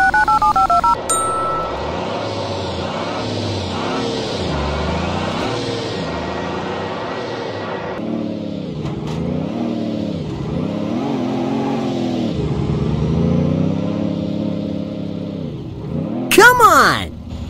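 A heavy truck engine revs up and down repeatedly.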